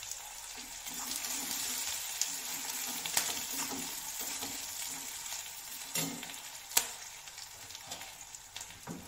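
Food sizzles in oil in a wok.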